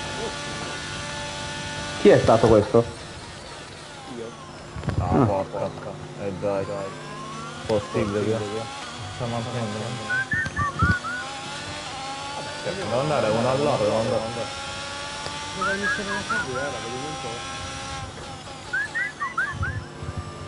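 A racing car engine whines steadily and shifts pitch through the gears.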